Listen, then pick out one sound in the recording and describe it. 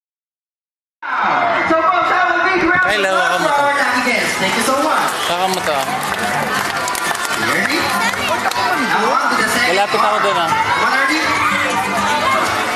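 A crowd of children and adults chatters loudly nearby.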